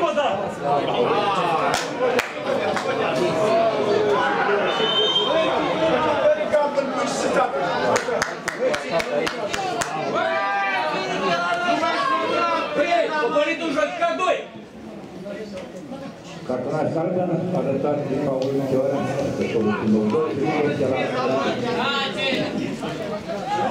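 A crowd of spectators chants and cheers in an open stadium.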